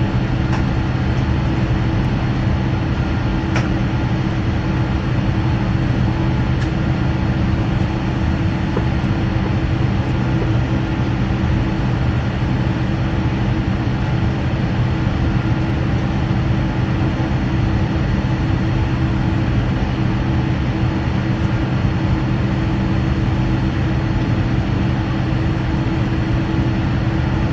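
An aircraft engine hums steadily while taxiing slowly.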